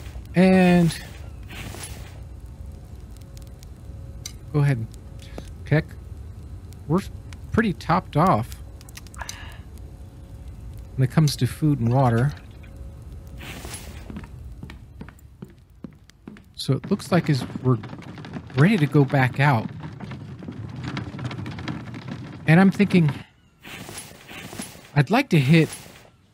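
An elderly man talks calmly into a close microphone, with pauses.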